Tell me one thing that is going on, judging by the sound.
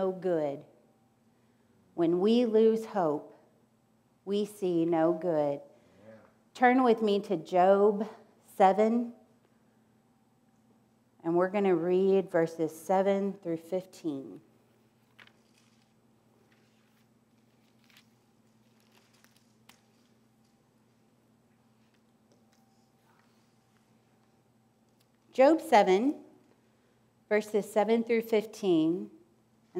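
A middle-aged woman speaks calmly through a microphone, pausing often.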